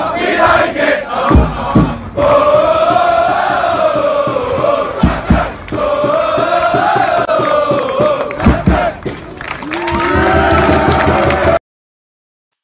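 A large crowd chants and sings loudly outdoors.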